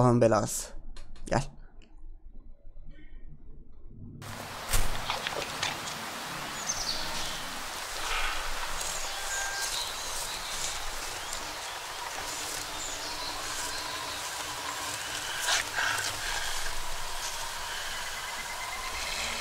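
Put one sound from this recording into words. A young man talks calmly into a headset microphone.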